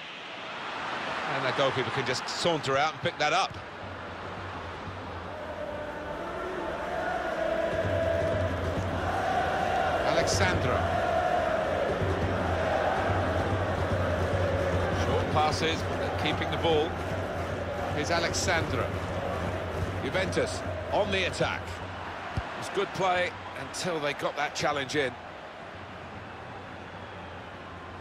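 A large stadium crowd roars and swells.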